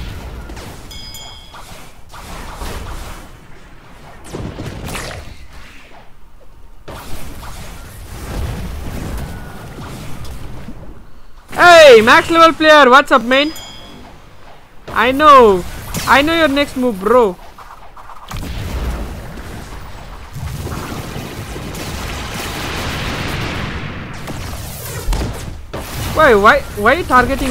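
Game combat effects whoosh and blast.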